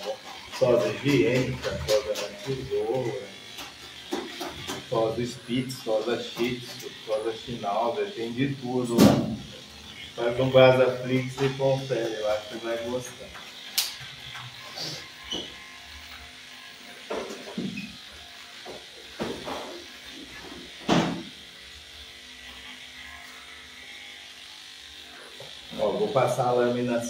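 Electric clippers hum steadily.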